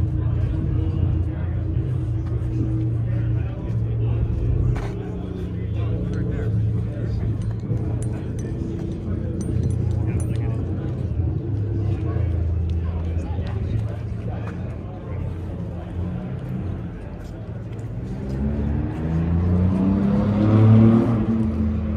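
A crowd of people chats in the distance outdoors.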